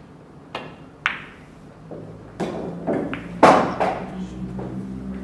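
Billiard balls clack together and rattle into a pocket.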